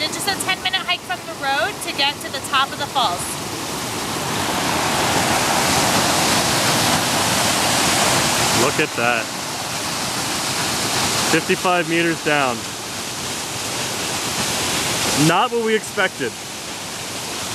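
A heavy waterfall roars as it plunges into a pool below.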